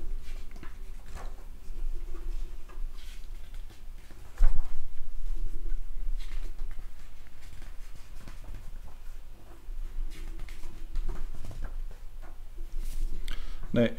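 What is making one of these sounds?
Magazine pages rustle and flap as they are turned.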